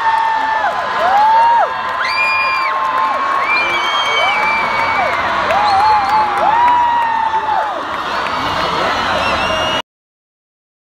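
People in a crowd whistle shrilly again and again.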